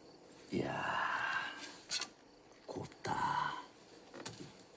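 A young man speaks softly in wonder, close by.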